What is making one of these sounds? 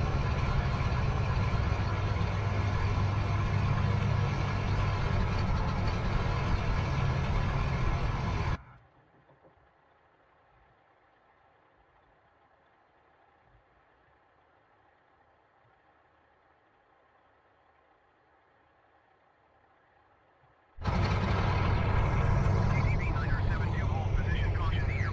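Twin propeller engines drone loudly and steadily, then sound muffled and far quieter for a while.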